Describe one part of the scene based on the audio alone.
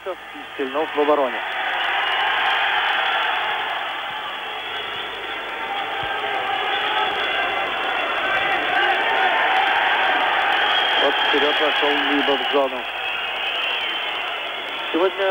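A large arena crowd roars and cheers.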